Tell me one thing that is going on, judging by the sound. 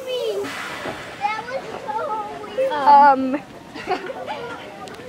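Children shout and squeal nearby.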